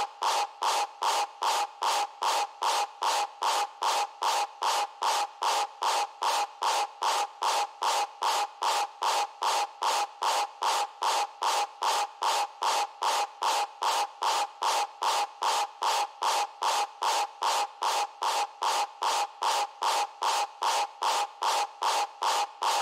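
A fast electronic beat pulses steadily.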